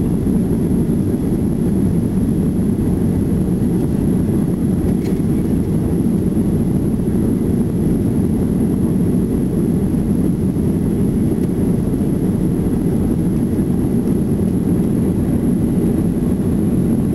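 An airliner's engines roar in a steady, deep drone inside the cabin.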